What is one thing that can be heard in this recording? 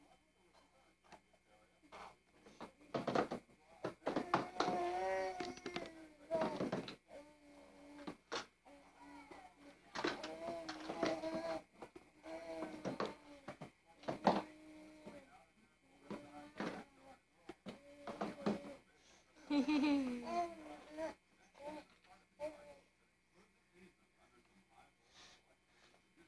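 Plastic toys clack and rattle as a baby handles them.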